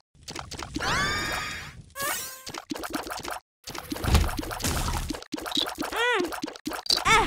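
Electronic game sound effects chime, pop and splat in quick bursts.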